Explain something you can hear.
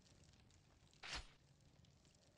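A shotgun is switched with a short metallic click.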